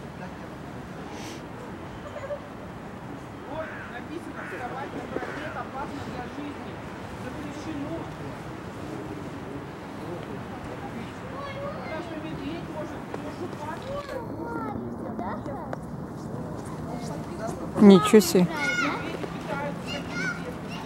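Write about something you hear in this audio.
Paws scuff and crunch on snow.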